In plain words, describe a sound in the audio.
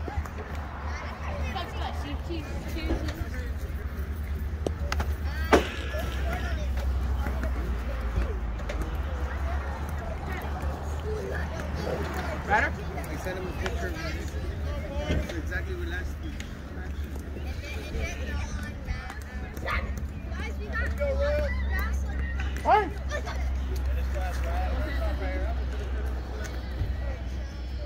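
Men and boys call out and chatter nearby outdoors.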